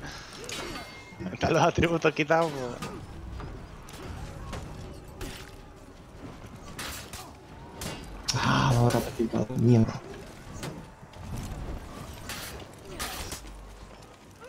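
Swords and axes clash and strike in a fierce melee.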